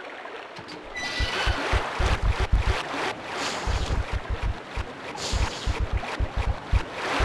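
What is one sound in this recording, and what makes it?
Footsteps echo steadily along a hard corridor.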